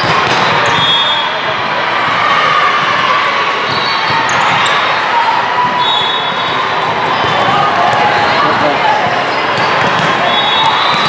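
Young women shout and call out to each other in a loud echoing hall.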